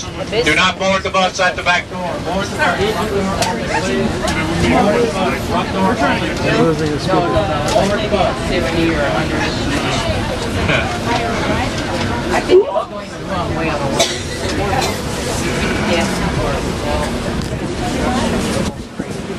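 A crowd of men and women chatters loudly all around, close by.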